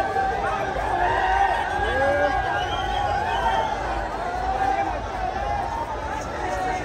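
A large crowd of men and women chatters and calls out close by, outdoors.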